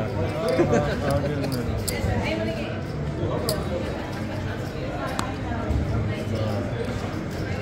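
Casino chips clack together on a table.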